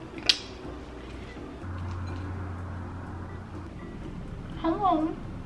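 A young woman bites into crunchy toast and chews.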